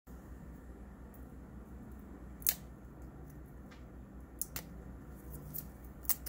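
Foil crinkles and crackles as a wrapper is handled close by.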